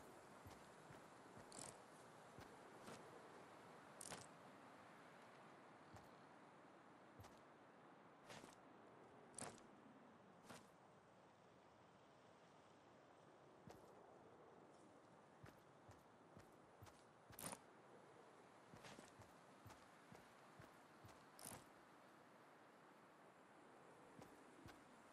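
Footsteps crunch softly through grass.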